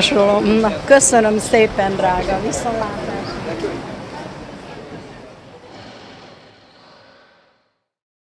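A street crowd murmurs and footsteps pass outdoors.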